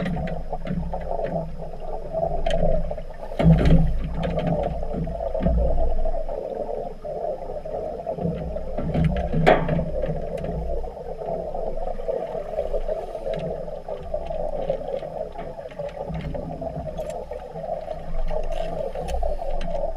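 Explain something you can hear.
A scuba diver's breathing gear gurgles and hisses underwater.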